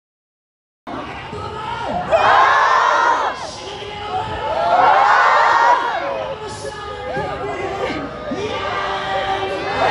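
A crowd of women calls out and cries loudly nearby.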